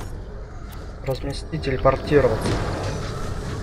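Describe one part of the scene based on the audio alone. A burst of digital crackling sounds as the vehicle materialises.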